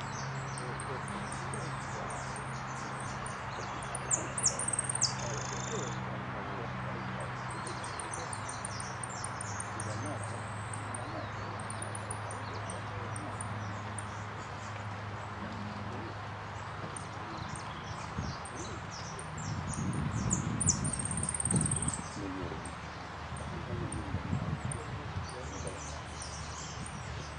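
A canary sings in high, rapid trills and chirps.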